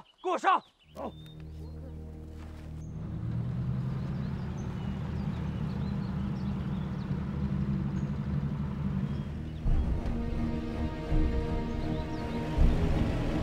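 A car engine rumbles as a vehicle drives through the woods.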